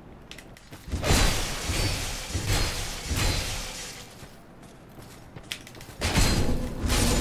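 A heavy axe swings through the air and strikes.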